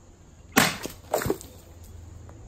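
A plastic bottle thuds as it strikes something nearby.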